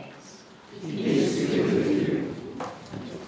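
A woman speaks aloud to a gathering.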